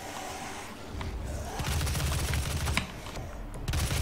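Guns fire rapidly in a video game.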